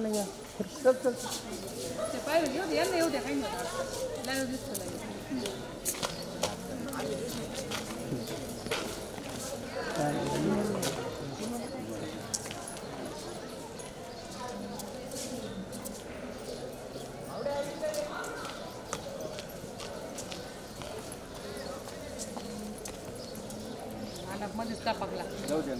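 Young people chatter and talk nearby.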